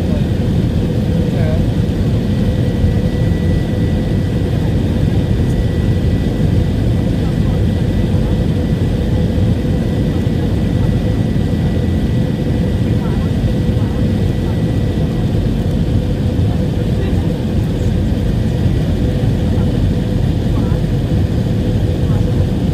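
A jet engine roars steadily, heard from inside an airliner cabin.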